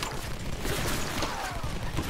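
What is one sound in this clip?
A bow twangs as an arrow is loosed.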